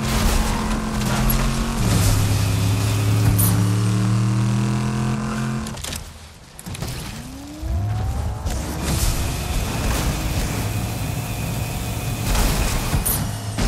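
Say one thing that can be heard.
A car engine hums steadily and then revs up again after a short pause.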